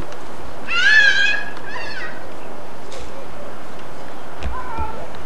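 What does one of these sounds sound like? A young girl calls out in a high, sing-song voice nearby.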